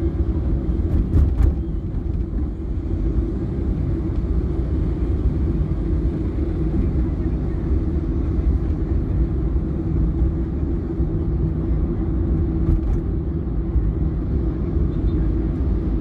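Traffic rumbles all around.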